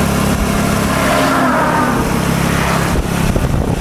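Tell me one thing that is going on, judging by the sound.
A truck roars past in the opposite direction.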